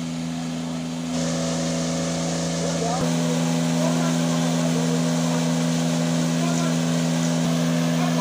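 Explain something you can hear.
Water gushes and splashes from a hose.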